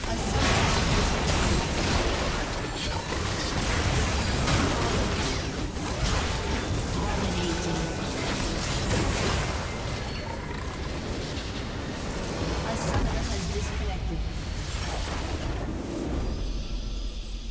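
Rapid magical blasts and clashing effects crackle through a chaotic video game battle.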